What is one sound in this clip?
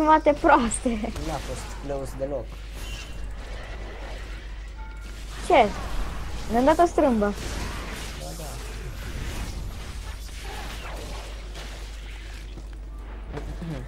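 Magic spells blast and crackle in a fight.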